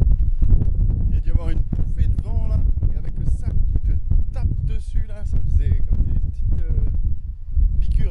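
A young man talks close to the microphone, outdoors in wind.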